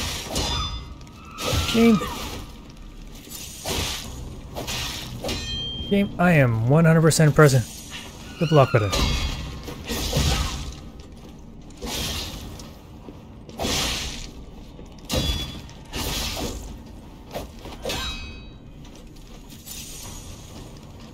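Blades clash and strike in a fast fight.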